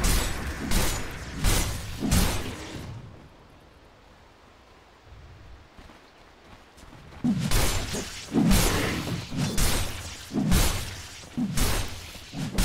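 Magic blasts and weapon impacts crash and whoosh in bursts.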